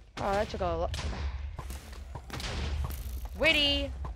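A bow twangs as an arrow is shot.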